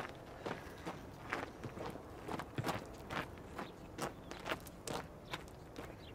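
Footsteps crunch on gravel, slowly fading away.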